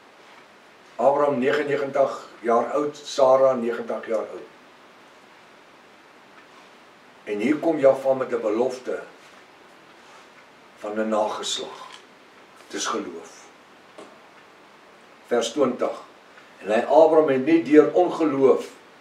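An elderly man speaks calmly and clearly, close by, with pauses between phrases.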